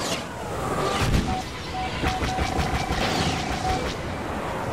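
Laser blasts fire in rapid bursts.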